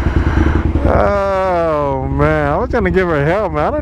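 A motorcycle engine revs up and down sharply.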